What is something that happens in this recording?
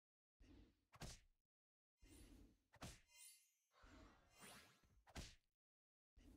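Short, soft game thuds sound as cards strike each other.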